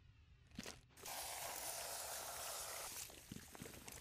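Explosive gel hisses as it is sprayed onto a crate.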